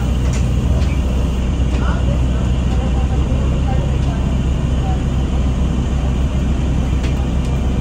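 The bus interior rattles and creaks.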